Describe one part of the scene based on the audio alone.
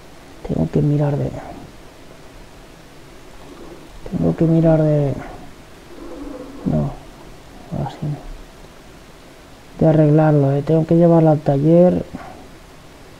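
A man talks casually into a microphone, in short bursts.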